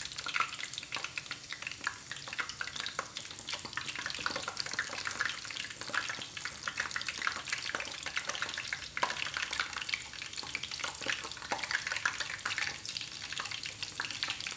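Metal tongs clack against a pan.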